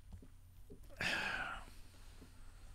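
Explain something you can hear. An elderly man breathes out sharply close to a microphone.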